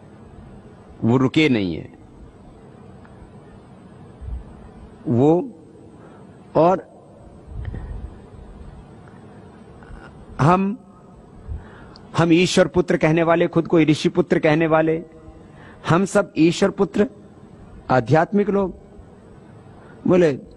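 A man speaks calmly and with animation through a microphone, in short bursts with pauses.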